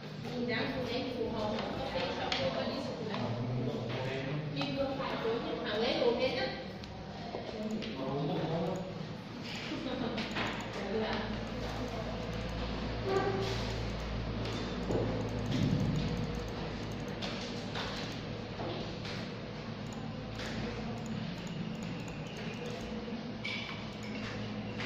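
Knitting needles click and tap softly against each other.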